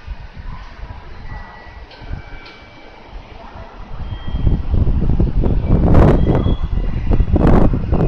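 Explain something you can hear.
A train rolls slowly into the station.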